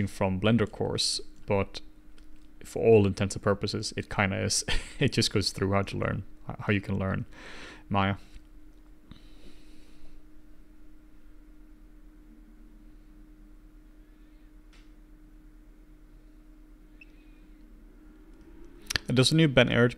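A middle-aged man talks calmly and closely into a microphone, pausing now and then.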